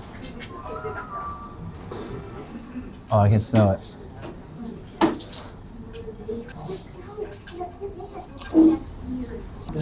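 A spoon scrapes and stirs through rice.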